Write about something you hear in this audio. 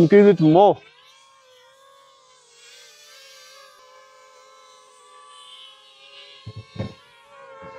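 A small drone's motors whine with a steady hum.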